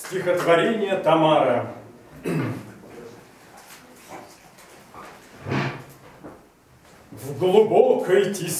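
A man sings in a full operatic voice in a room with some echo.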